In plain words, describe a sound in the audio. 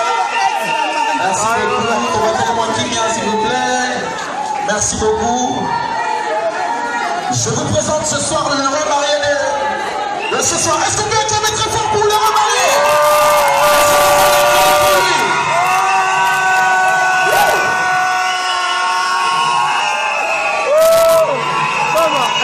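A crowd of women sings and cheers loudly close by.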